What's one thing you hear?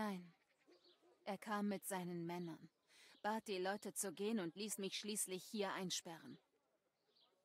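A woman speaks calmly and earnestly nearby.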